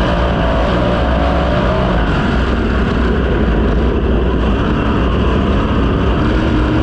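A race car engine roars loudly at full throttle close by.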